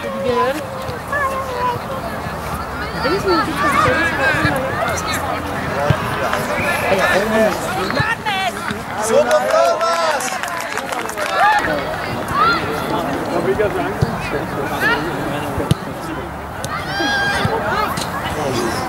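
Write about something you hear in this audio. Young male players shout and call to each other across an open field.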